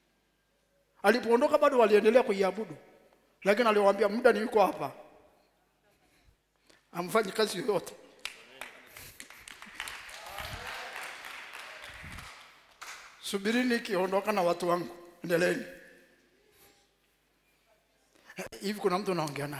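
A man preaches forcefully into a microphone, in bursts, in a large echoing hall.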